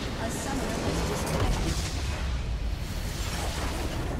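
A large game structure explodes with a deep boom.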